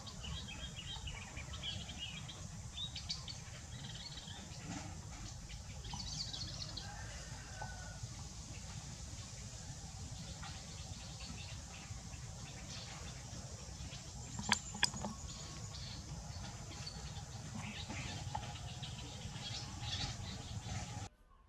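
Baby monkeys squeak and chirp softly.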